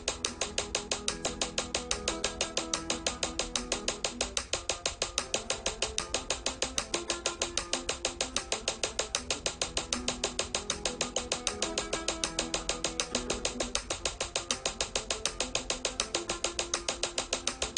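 A metronome clicks rapidly, gradually speeding up.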